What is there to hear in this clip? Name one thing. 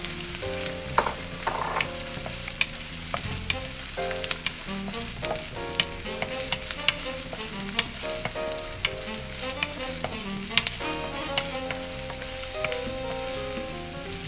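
A wooden spatula scrapes and taps against a metal pan.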